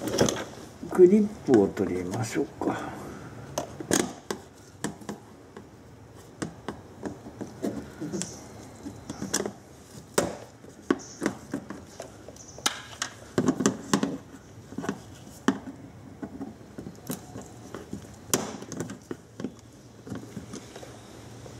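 Metal tools click and scrape against a plastic panel.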